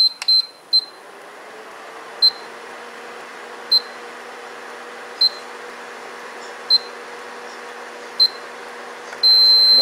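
A cooktop's cooling fan whirs steadily.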